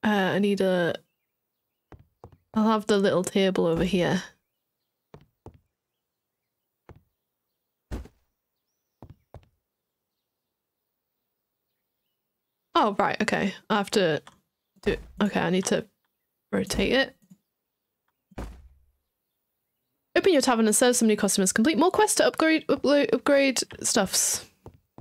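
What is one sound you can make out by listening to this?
A young woman talks casually and close to a microphone, in short bursts with pauses.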